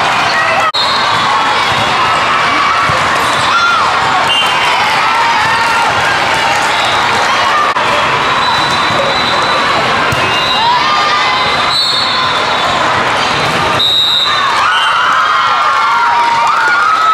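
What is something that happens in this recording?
Many voices chatter and shout throughout a large echoing hall.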